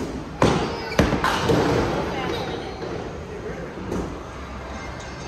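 A bowling ball rolls and rumbles down a lane.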